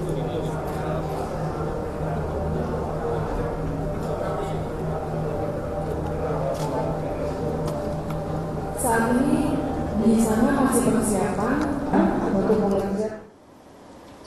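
Several men talk quietly together nearby.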